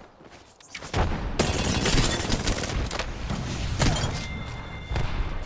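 Rapid gunfire rattles from a game.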